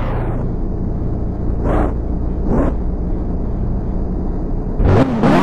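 Car engines roar steadily at speed.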